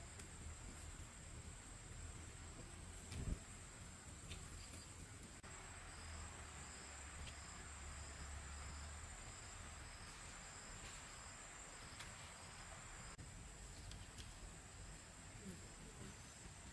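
Bamboo stakes knock and creak softly as they are tied together.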